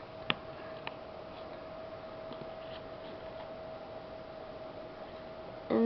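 Fingers click and tap a small plastic toy figure.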